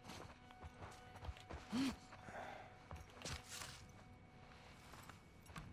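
Footsteps tread slowly across a hard floor.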